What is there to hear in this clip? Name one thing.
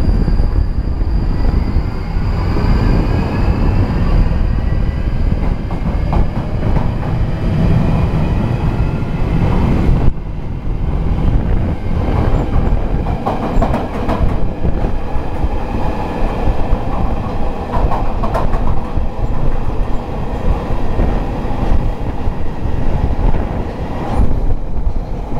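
An underground train rumbles loudly along the tracks with a steady roar.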